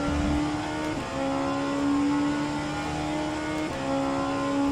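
A racing car engine briefly dips as gears change.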